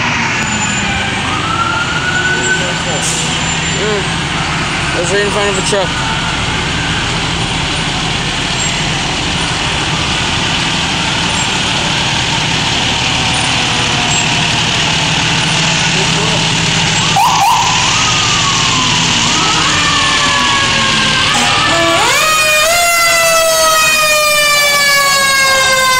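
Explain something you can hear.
A fire truck engine rumbles as the truck rolls slowly past close by.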